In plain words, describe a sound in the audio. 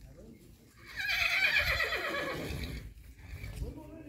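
A horse whinnies loudly nearby.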